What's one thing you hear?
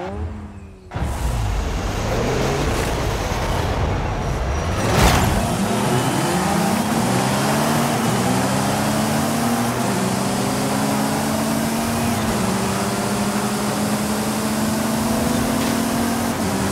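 A racing car engine revs hard and climbs through the gears.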